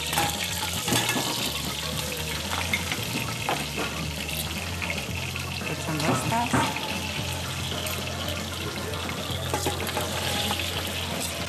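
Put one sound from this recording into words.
Food slides from a plate into a metal pot with a soft thud.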